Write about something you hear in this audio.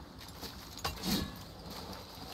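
A heavy body lands with a thud.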